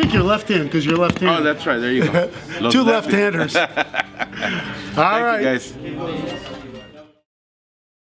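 An older man talks with animation close by.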